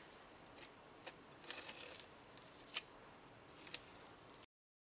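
A palette knife scrapes and taps across paper.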